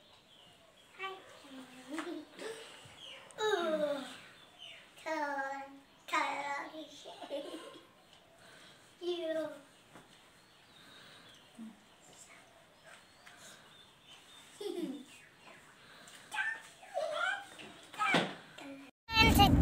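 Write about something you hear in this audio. A woman talks playfully to a young girl close by.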